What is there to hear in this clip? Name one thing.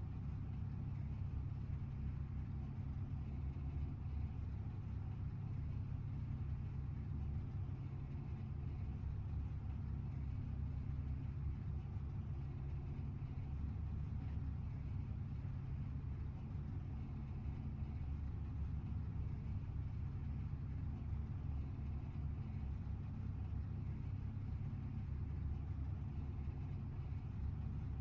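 Race car engines idle with a low, steady rumble.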